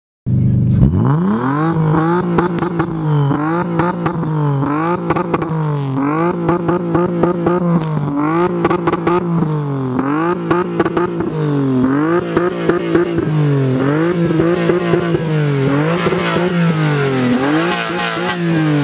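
A car exhaust pops and crackles.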